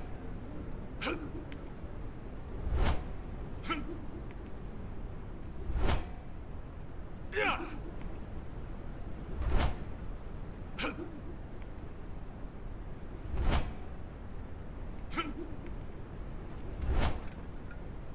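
An axe whooshes through the air and thuds into a target, again and again.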